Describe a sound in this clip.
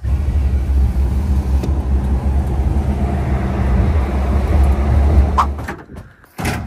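A vehicle engine rumbles low and steady while driving.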